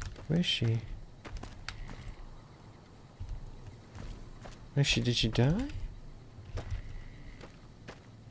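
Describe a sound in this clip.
Footsteps crunch on dry gravel.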